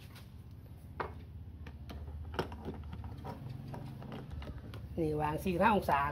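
A portafilter clicks and locks into an espresso machine.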